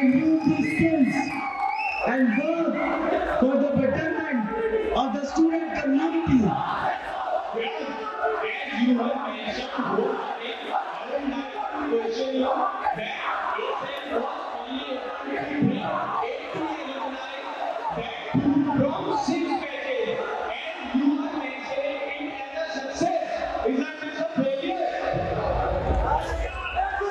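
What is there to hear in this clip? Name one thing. A man speaks steadily into a microphone, heard through loudspeakers in an echoing hall.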